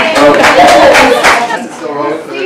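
Women laugh loudly close by.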